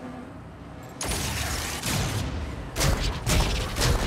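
Heavy mech guns fire in rapid bursts.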